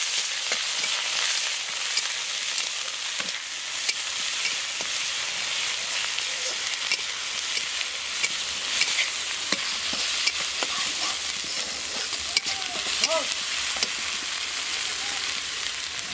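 A metal spatula scrapes and clinks against a pan.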